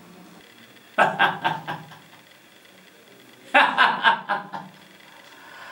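A man laughs loudly.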